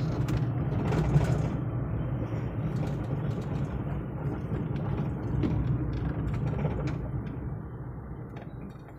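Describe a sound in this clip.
Tyres roll and bump over a rough road, with sharp rattles and knocks.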